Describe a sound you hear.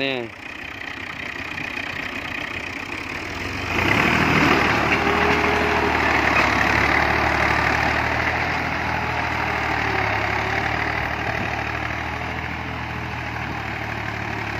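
A tractor engine rumbles steadily close by and slowly moves away.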